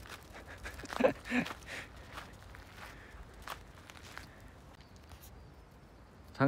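A dog's paws patter and scrape on ice.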